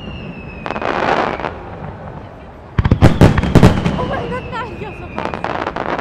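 Fireworks crackle and sizzle overhead.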